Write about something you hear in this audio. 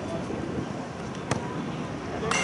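A boot thumps a ball in a single kick.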